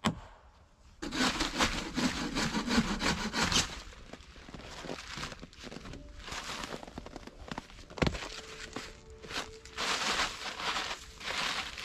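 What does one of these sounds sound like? A plastic tarp rustles and crinkles as a man handles it.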